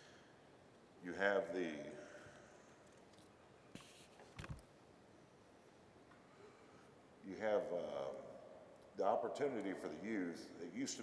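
A middle-aged man speaks loudly through a microphone in a large echoing hall, in short bursts.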